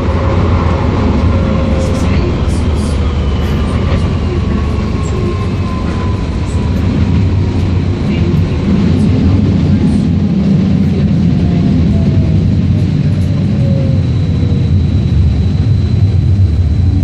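Train brakes whine with a slowly falling tone as the train slows.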